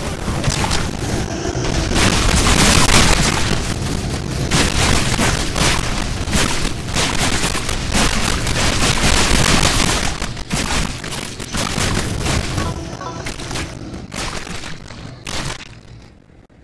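Loud explosions and gunfire blast repeatedly in a video game.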